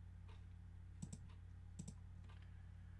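Soft game interface clicks sound.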